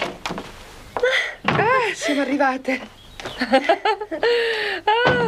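A young woman speaks excitedly in a high voice, close by.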